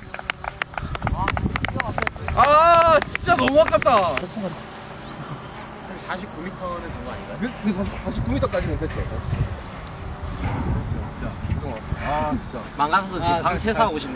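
A man speaks with animation outdoors.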